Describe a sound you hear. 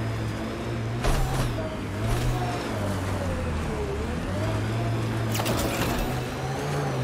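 A vehicle thumps and rattles as it bounces over rocks.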